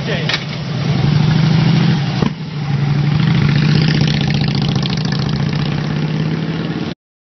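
A motorcycle engine revs and pulls away.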